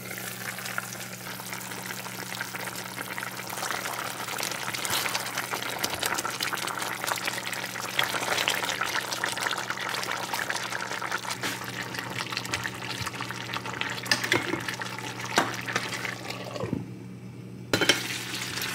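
A pot lid clinks onto a pot.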